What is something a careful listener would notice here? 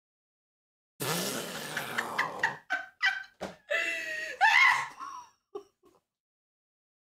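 A young woman laughs and screams loudly, close to a microphone.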